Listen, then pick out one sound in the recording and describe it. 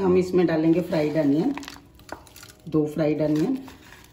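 Fried onions drop and rustle onto meat in a metal bowl.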